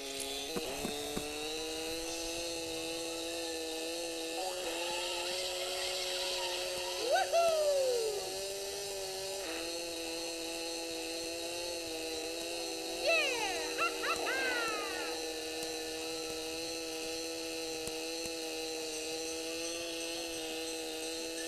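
A small kart engine hums steadily at high speed.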